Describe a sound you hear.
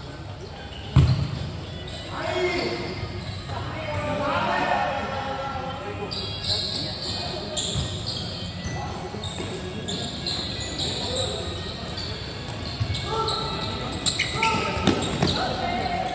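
A ball thuds off feet and bounces on a hard floor.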